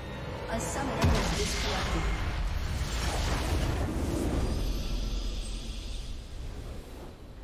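A large magical blast booms and rumbles, then slowly fades.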